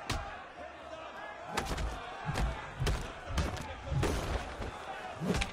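Fists thud in a brawl.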